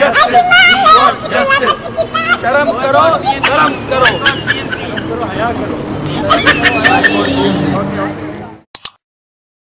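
Young men speak and shout excitedly outdoors.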